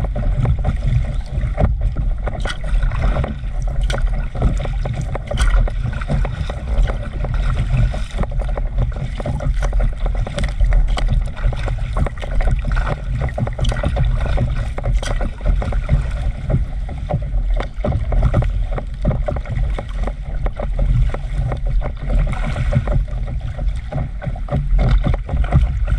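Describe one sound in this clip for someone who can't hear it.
Water splashes and laps against a board gliding close by.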